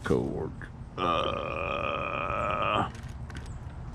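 An electric scooter motor whines briefly.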